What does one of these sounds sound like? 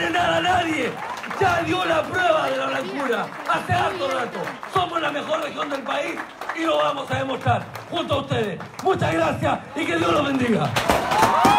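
A man sings loudly through a microphone in a large room.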